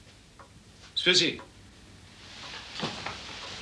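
An elderly man speaks briefly, close by.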